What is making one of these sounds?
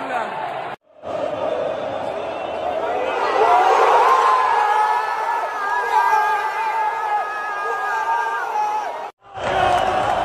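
A large crowd chants and sings in a big echoing stadium.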